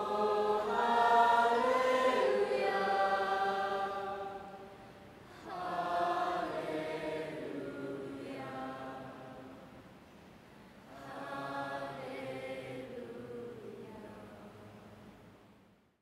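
A crowd sings together in a large echoing hall.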